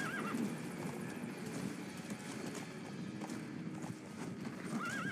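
Horse hooves clop steadily on dry ground.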